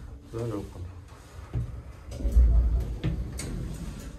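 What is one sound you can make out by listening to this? Elevator doors slide open with a thud.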